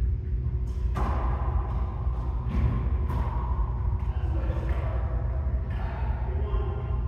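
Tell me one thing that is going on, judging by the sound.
Men talk casually nearby in an echoing room.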